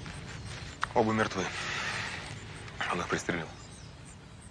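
A woman speaks sharply, close by.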